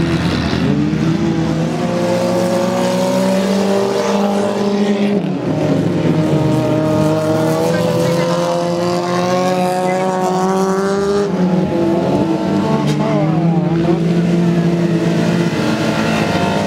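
Car engines roar and rev hard.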